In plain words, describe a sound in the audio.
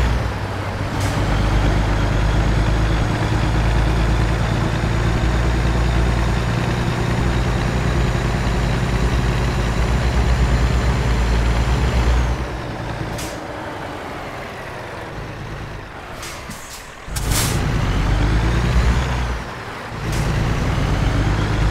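A truck's diesel engine rumbles loudly, easing off then rising again.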